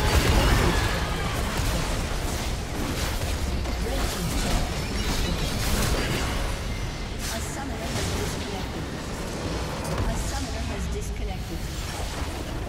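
Video game battle effects whoosh, clash and burst with magical impacts.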